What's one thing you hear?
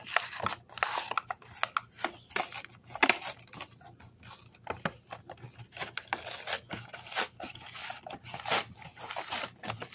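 Cardboard scrapes and tears as a box is opened.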